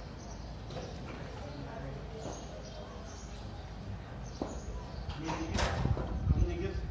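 Children's voices call out faintly in the distance, outdoors.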